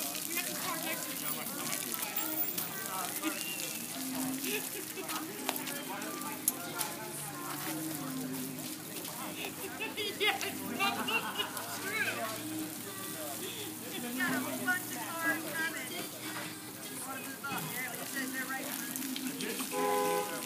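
A crowd of men and women talk and shout outdoors.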